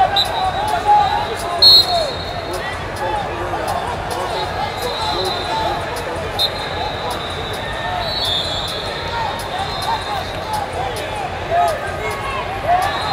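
Wrestling shoes squeak on a mat.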